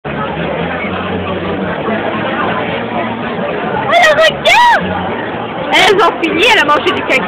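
Many people chatter in a noisy crowd in the background.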